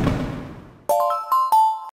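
A short cheerful jingle plays.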